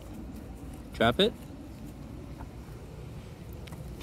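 A dog chews and gnaws on a wooden stick.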